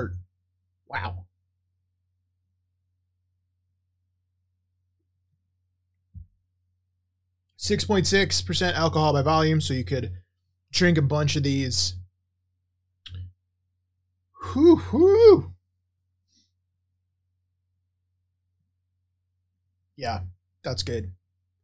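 A man talks with animation close to a microphone, in short bursts with long silences between.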